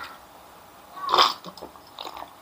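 A young man gulps a drink.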